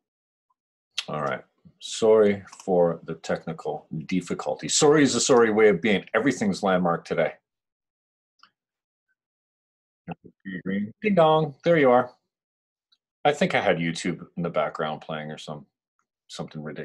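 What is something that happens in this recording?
A middle-aged man talks calmly and closely into a microphone, with pauses.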